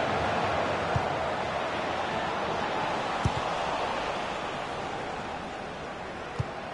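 A football is kicked with dull thumps.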